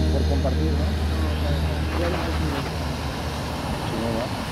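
Fountain jets of water rush and splash loudly outdoors.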